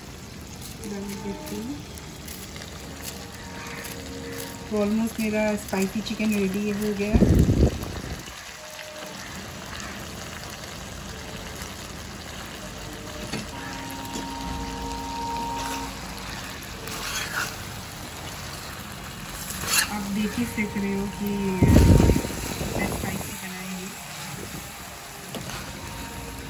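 Food sizzles gently in a pan.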